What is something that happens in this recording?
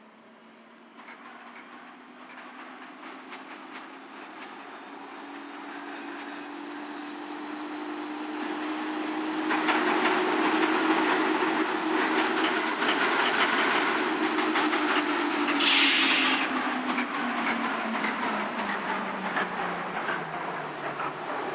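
A train's electric motors whine, rising and then slowly falling in pitch.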